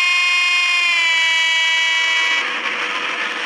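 A train horn blows loudly and steadily, then dips slightly in pitch.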